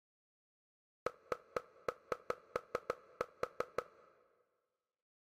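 Short electronic beeps tick rapidly.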